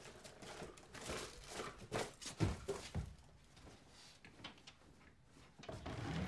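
A wooden wardrobe door knocks and rattles.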